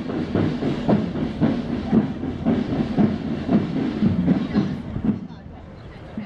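Many feet march in step on pavement outdoors.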